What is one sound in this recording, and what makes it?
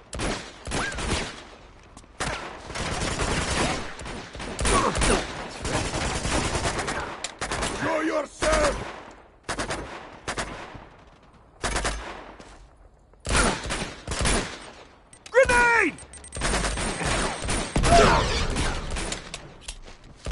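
Gunshots fire in rapid bursts with loud cracks.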